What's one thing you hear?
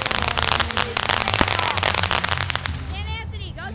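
A fountain firework sprays and crackles.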